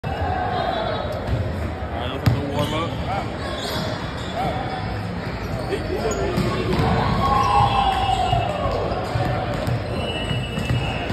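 Several men and women chatter in a large echoing hall.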